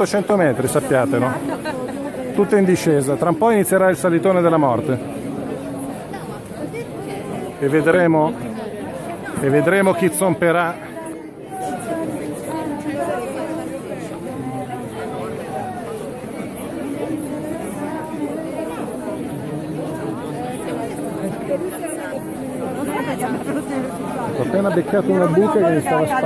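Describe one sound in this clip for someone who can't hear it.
A large crowd murmurs and chatters all around.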